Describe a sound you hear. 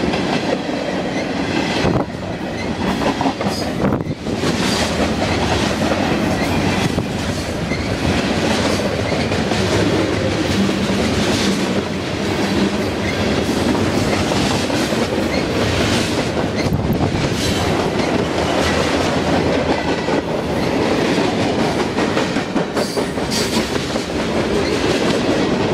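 Train wheels clatter and clank over rail joints.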